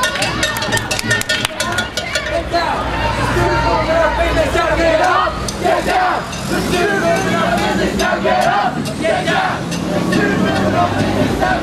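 A crowd of people talks and chatters nearby outdoors.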